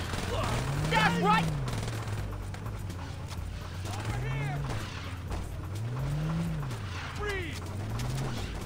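Car tyres squeal sharply while skidding.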